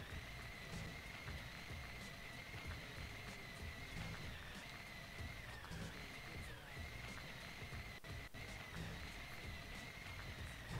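A small electric cart motor whines steadily.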